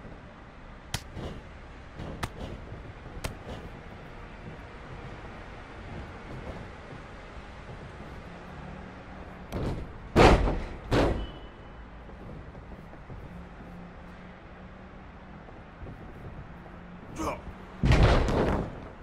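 Heavy bodies slam onto a wrestling ring mat with loud thuds.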